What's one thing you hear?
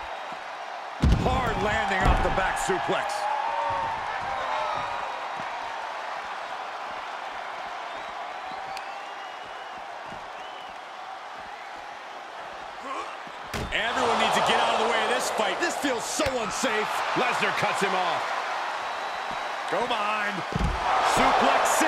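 A wrestler slams an opponent onto a hard floor with a heavy thud.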